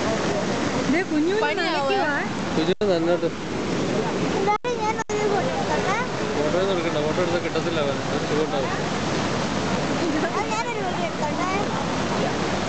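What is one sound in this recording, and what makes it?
A girl talks excitedly close by.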